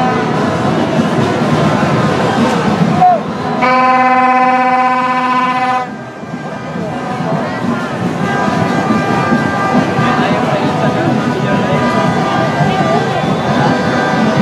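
A large crowd chatters and chants outdoors.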